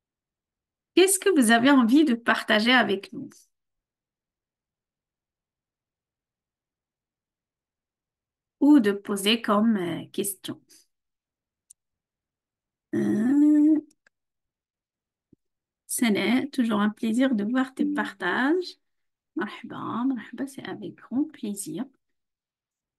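A middle-aged woman speaks calmly over an online call, pausing between phrases.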